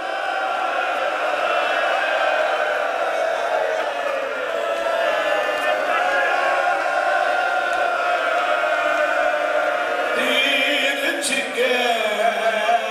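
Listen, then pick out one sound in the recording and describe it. A man recites with passion into a microphone, his voice loud and ringing through a loudspeaker.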